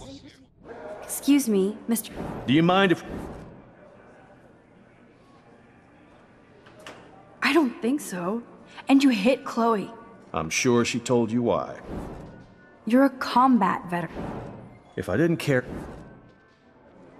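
A young woman speaks calmly and questioningly.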